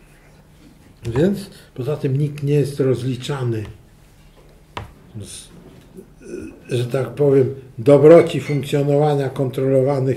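An older man speaks calmly and clearly.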